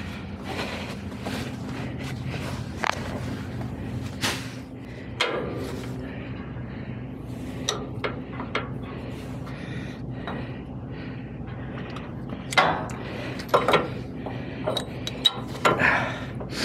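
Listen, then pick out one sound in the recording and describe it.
Metal parts clank and knock against each other.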